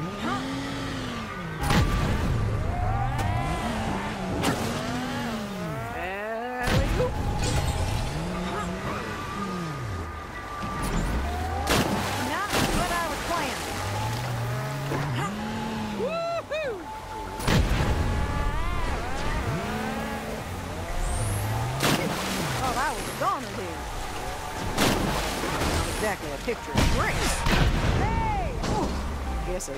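Toy-like car engines rev and whine, rising and falling in pitch.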